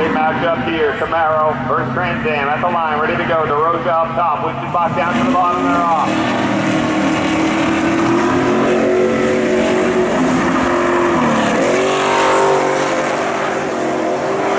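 Tyres screech loudly on asphalt.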